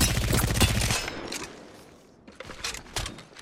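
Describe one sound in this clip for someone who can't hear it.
A weapon clatters as it is reloaded.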